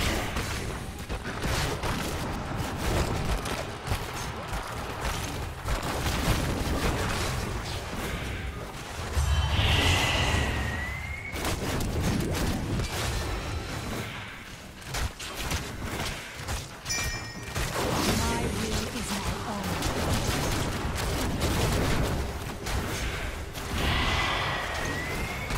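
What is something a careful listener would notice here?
Game battle effects clash, zap and crackle.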